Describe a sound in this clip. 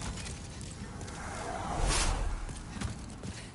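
A magical burst whooshes and rumbles.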